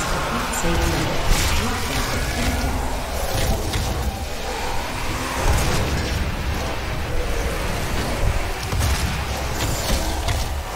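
Heavy gunfire blasts rapidly.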